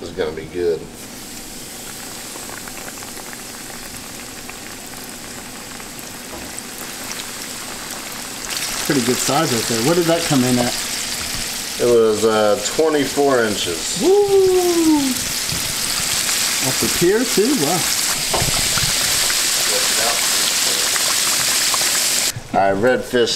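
Oil sizzles and crackles loudly in a frying pan.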